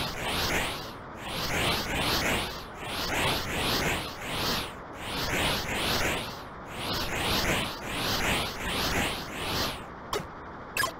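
A video game's electronic engine roars in rising, repeating sweeps.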